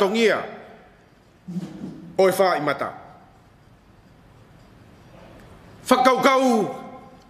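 An elderly man speaks slowly and solemnly into a microphone, in a reverberant room.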